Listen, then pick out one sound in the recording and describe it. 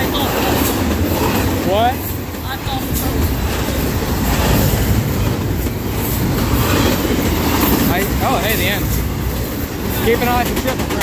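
A double-stack freight train rolls past close by, its steel wheels rumbling on the rails.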